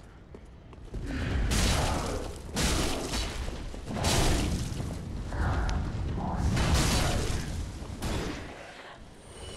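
Fire roars in bursts.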